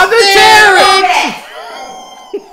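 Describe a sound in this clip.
A man laughs loudly close by.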